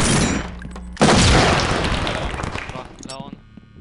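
A stun grenade goes off with a sharp, loud bang.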